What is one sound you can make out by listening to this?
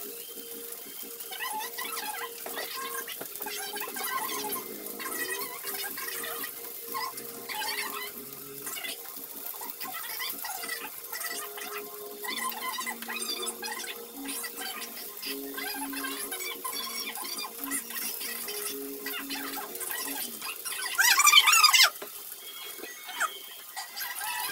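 Metal tongs tap and scrape against a frying pan.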